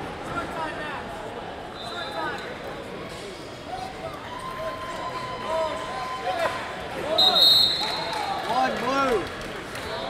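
Spectators shout and cheer in a large, echoing hall.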